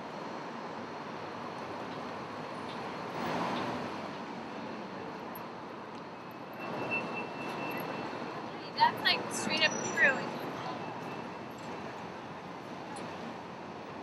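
City traffic rumbles steadily along a busy street.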